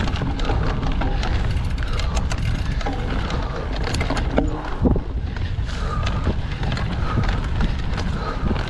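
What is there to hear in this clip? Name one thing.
Bicycle tyres roll and crunch over a dirt trail with dry leaves.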